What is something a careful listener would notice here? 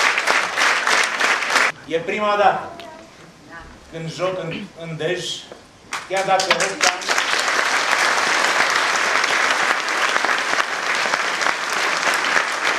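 An audience claps and applauds loudly.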